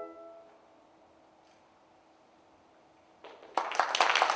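An orchestra holds a final soft chord.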